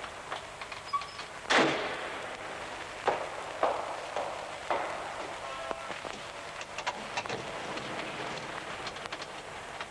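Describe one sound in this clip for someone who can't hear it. Footsteps thud on a staircase.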